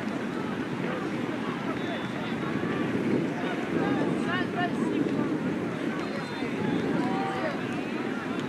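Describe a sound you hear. A crowd of spectators chatters and calls out across an open field.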